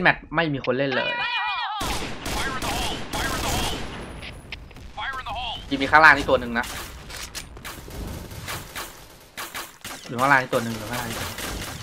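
A sniper rifle fires sharp single shots.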